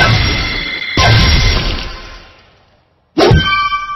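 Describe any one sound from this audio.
A bright game chime rings out as stars pop up, then fades away.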